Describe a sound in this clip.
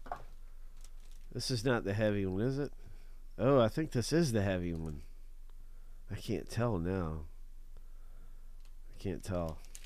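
A foil wrapper crinkles in someone's hands.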